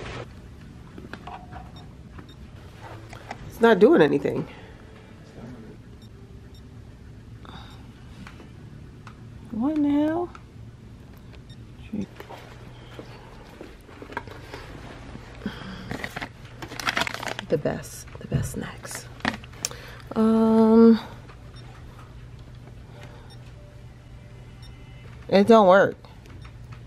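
A touch panel beeps as it is pressed.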